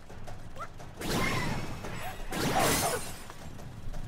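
A game's character lands with a whooshing burst of noise.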